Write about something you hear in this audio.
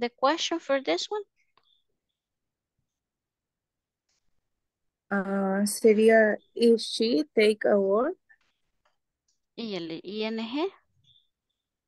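A woman speaks calmly over an online call, in short phrases.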